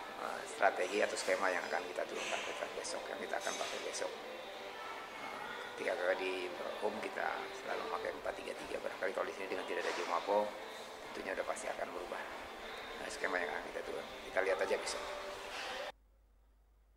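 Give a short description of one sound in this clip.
A middle-aged man speaks calmly to someone close by.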